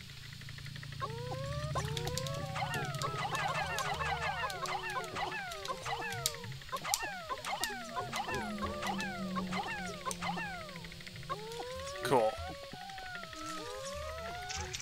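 Many tiny creatures chirp in quick, high, sliding squeaks.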